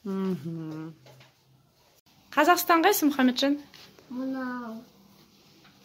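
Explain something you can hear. A young child speaks up close in short, drawn-out phrases.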